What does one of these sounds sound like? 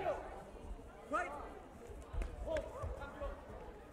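A kick thuds against a body protector.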